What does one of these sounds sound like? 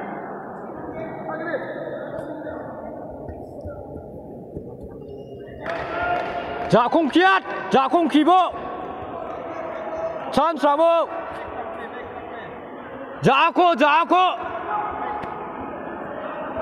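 Spectators murmur in a large echoing hall.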